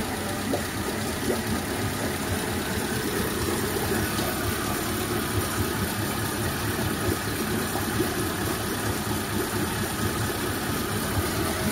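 Water churns and splashes in a barrel.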